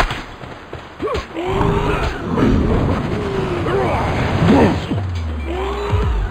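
Creatures squeal and cry out in a fight.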